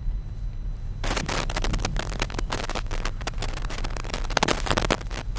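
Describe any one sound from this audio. A man reads out the news steadily through a microphone.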